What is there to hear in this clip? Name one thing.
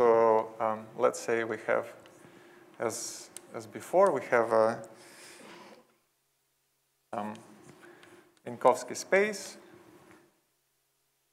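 A young man speaks calmly, lecturing in a room with a slight echo.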